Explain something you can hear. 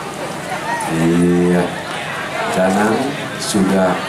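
A young man sings a sustained note into a microphone.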